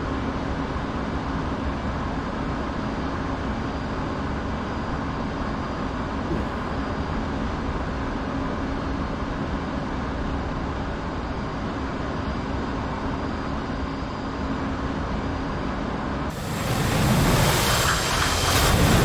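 A jet engine roars steadily and grows louder near the end.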